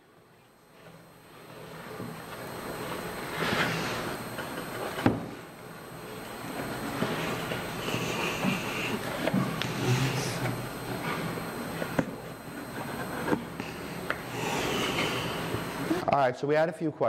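A putty knife scrapes and spreads filler across wood.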